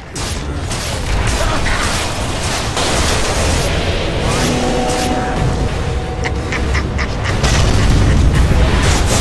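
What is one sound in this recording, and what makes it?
Heavy impacts thud and crash.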